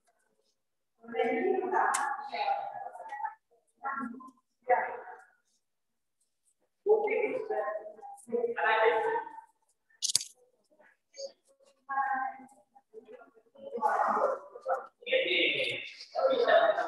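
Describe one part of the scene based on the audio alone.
A woman talks calmly, heard through an online call.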